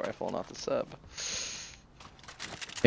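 An item is picked up with a short whoosh.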